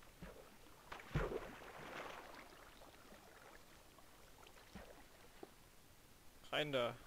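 Water splashes and swirls.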